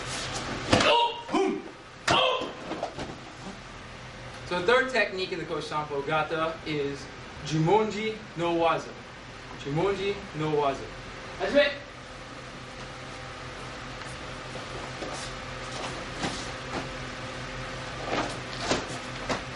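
Feet thud and shuffle on a mat as men grapple.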